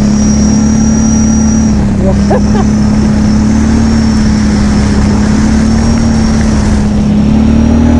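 A quad bike engine drones steadily close by.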